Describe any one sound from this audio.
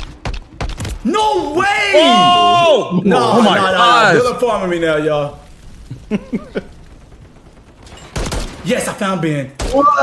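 A young man talks excitedly and loudly into a microphone, close up.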